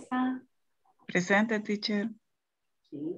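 Another young woman speaks calmly over an online call.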